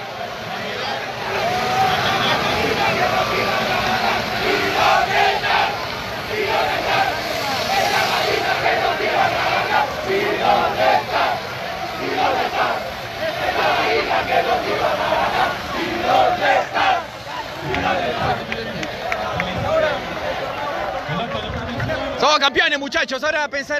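A crowd of young men cheers and shouts loudly outdoors close by.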